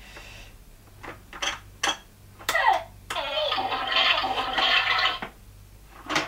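Plastic toy parts click and rattle as they are handled.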